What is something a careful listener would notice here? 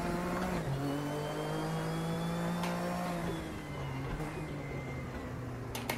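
A race car engine drones loudly, its pitch shifting as the car changes gear and speed.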